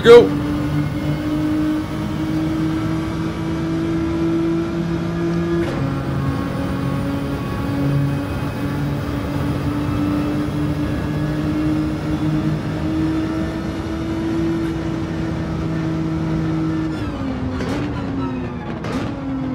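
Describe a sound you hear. A racing car engine drones steadily, shifting pitch as the gears change.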